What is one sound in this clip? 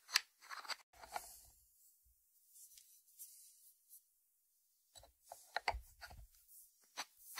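A ceramic dish knocks and slides on a wooden board.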